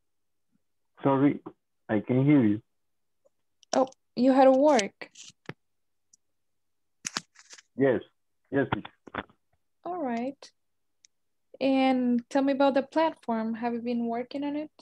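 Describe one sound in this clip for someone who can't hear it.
A woman speaks calmly through an online call, in short bursts with pauses.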